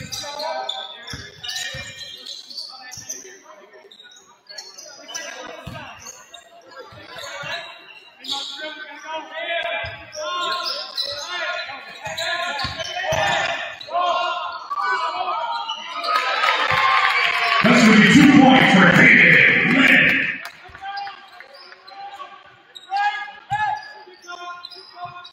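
A basketball bounces on a wooden court floor.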